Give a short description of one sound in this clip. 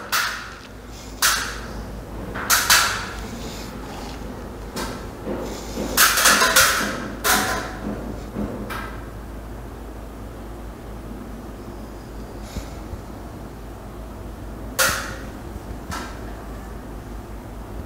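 Electrical wire rustles as it is handled.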